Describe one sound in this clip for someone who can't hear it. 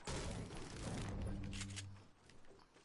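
A pickaxe chops at wood.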